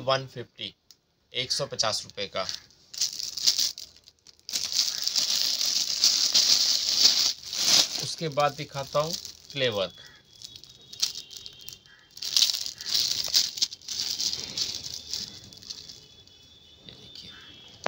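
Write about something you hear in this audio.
Plastic packets crinkle and rustle as they are handled.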